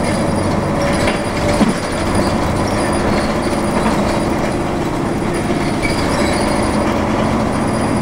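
A car rumbles steadily along a road, heard from inside.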